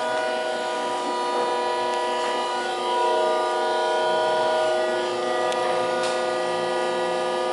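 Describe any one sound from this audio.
An elevator hums with a steady, droning tone.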